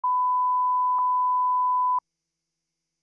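A steady high test tone sounds, then stops abruptly.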